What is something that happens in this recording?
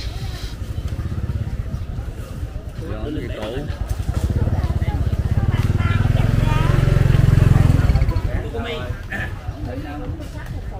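An elderly woman talks nearby.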